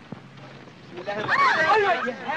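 A woman's voice rises and falls in a high, wavering tone.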